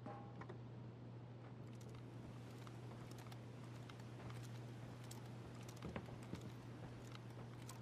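Footsteps crunch on a hard floor.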